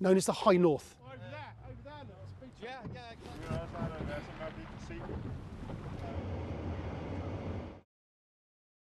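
A boat's engine rumbles low over the water.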